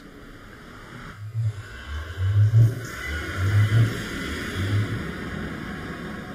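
A low, eerie portal hum swells and wavers.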